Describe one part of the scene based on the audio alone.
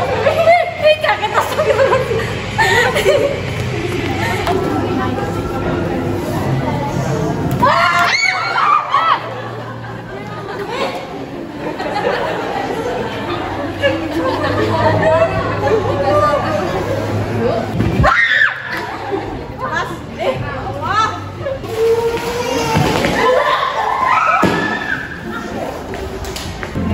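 Several young women chatter and exclaim nearby.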